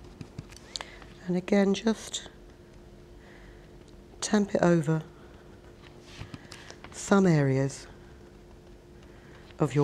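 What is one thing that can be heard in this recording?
A sponge dabs softly on paper.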